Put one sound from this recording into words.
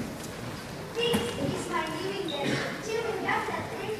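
Children talk and call out together.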